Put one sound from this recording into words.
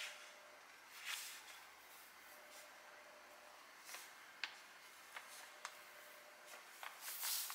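Large sheets of paper rustle and crinkle as hands smooth them flat.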